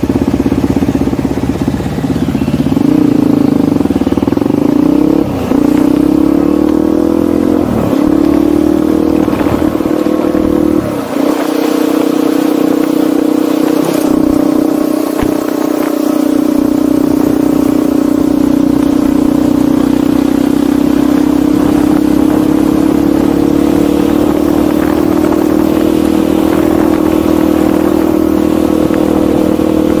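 A motorcycle engine hums steadily up close, rising and falling in pitch as it speeds up and shifts gears.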